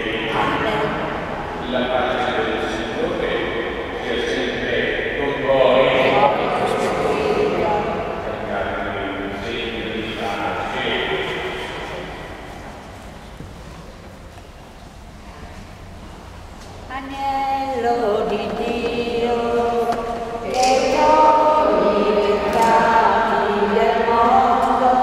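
A man chants in a steady sung voice, heard through loudspeakers in a large echoing hall.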